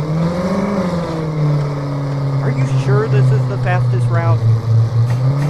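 A car engine hums steadily at low revs.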